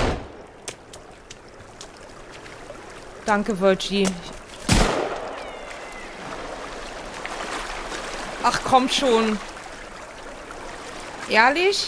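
A stream rushes over rocks nearby.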